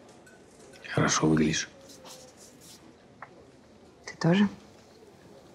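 A man speaks softly up close, with a warm tone.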